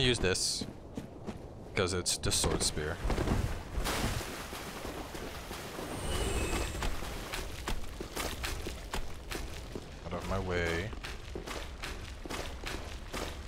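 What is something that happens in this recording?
Armoured footsteps crunch on gravel and stone.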